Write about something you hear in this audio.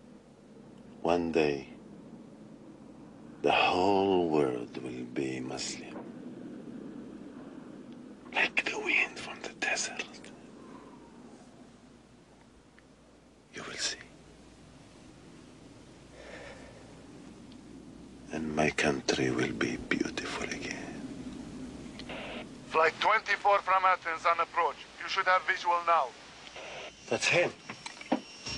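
A man speaks tensely and with emotion, close by.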